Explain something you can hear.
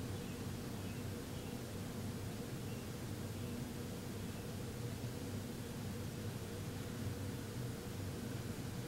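A man hums a low, steady drone close by.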